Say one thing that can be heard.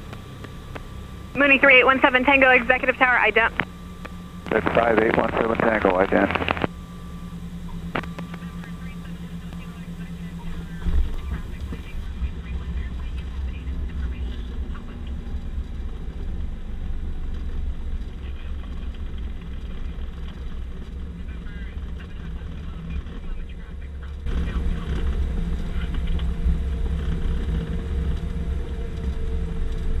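A propeller engine drones steadily and grows louder as the plane speeds up.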